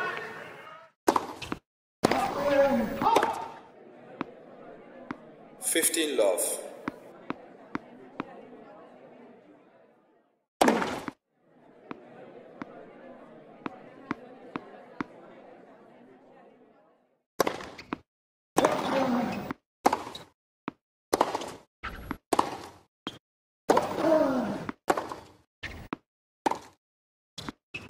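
A racket hits a tennis ball with sharp pops.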